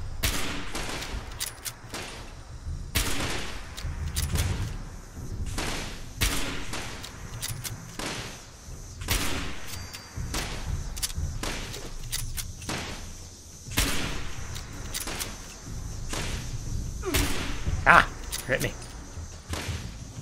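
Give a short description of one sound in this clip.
A shotgun is pumped and reloaded with metallic clacks.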